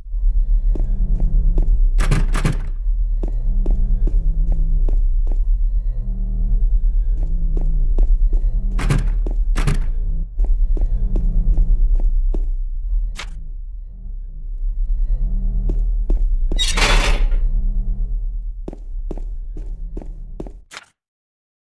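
Footsteps thud on a hard floor at a steady walking pace.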